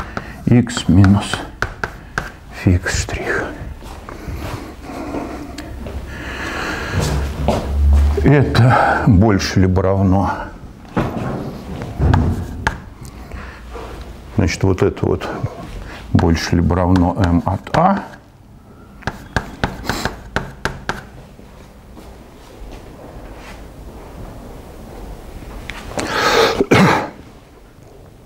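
An elderly man lectures calmly in a room with a slight echo.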